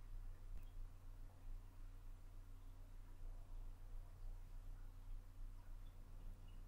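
Fingers softly brush and rub against skin close to a microphone.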